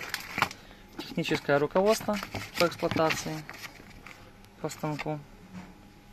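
Paper rustles as a booklet is handled.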